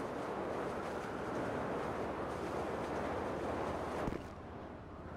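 Wind rushes loudly past a falling man.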